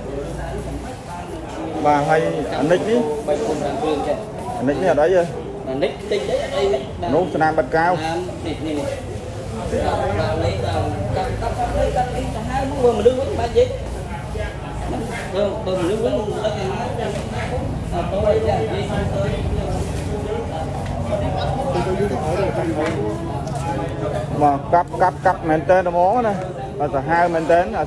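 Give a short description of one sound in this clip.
A man talks rapidly nearby.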